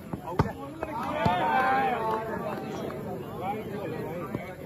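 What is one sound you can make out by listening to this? A crowd of spectators cheers and chatters loudly.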